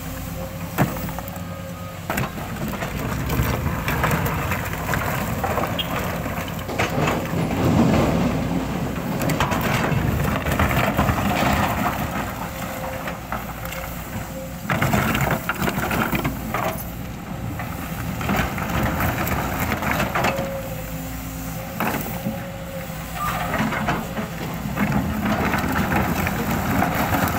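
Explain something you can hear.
Rocks clatter and scrape in an excavator bucket.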